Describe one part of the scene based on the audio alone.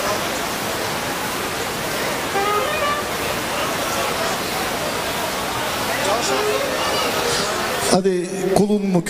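A crowd of people chatters in a large, echoing hall.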